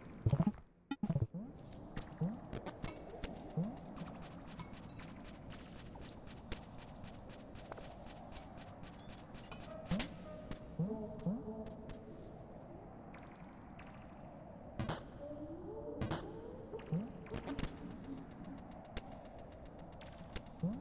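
Soft, echoing game music plays with low plucked notes.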